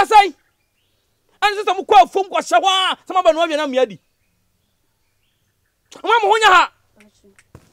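A man speaks sternly and loudly nearby.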